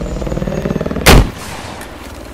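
A rocket launcher fires with a sharp blast.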